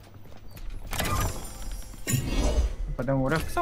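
A treasure chest clicks and creaks open.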